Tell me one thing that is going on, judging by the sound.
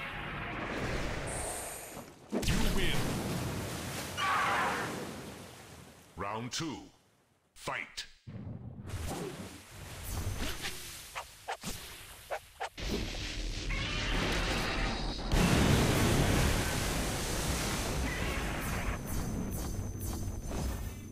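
Monsters roar in a video game.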